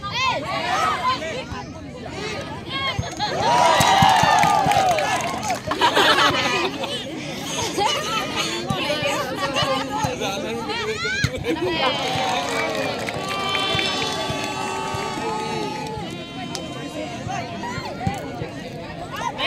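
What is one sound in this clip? Young women players call out to each other on the court.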